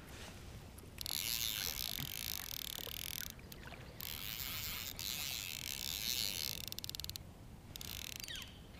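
A fishing reel clicks and whirs as line is pulled from it.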